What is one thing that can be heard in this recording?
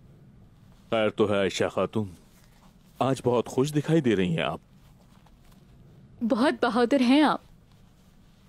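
A man speaks calmly and warmly nearby.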